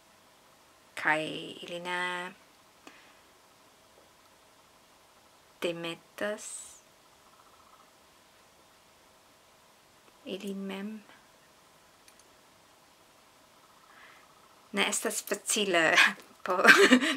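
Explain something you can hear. A young woman speaks close to a microphone, in short bursts with pauses.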